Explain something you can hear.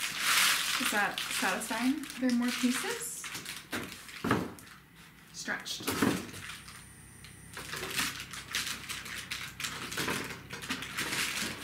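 A paper lantern rustles and crinkles as it is handled.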